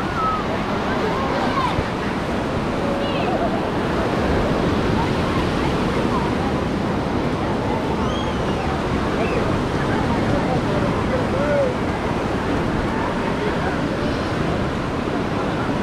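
Small waves wash and break on the shore.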